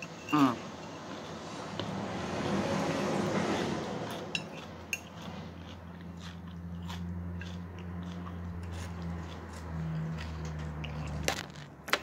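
A woman chews food with her mouth close to a microphone.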